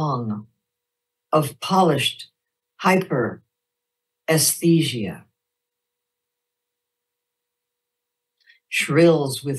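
A middle-aged woman reads aloud slowly and expressively, heard close through a microphone.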